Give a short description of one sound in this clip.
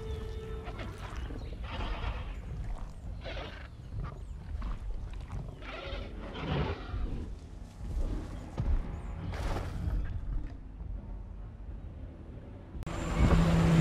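A large dinosaur walks with heavy thudding footsteps.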